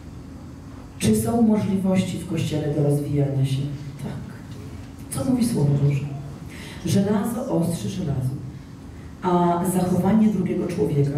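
A young woman speaks with animation through a microphone and loudspeakers in an echoing hall.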